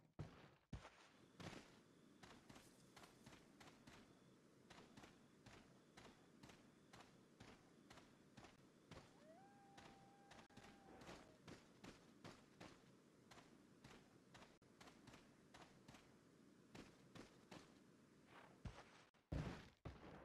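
Footsteps crunch steadily on dirt and gravel.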